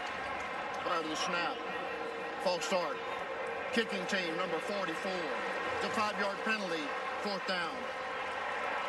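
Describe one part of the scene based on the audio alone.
A man announces calmly over a loudspeaker, echoing around the stadium.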